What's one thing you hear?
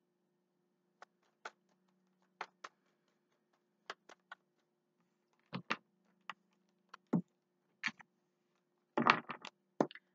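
Cards click and tap together as they are shuffled and gathered up.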